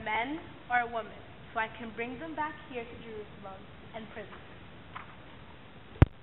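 A girl speaks clearly in a large echoing hall.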